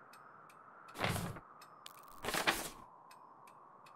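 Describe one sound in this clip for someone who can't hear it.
Paper swishes as a page turns over.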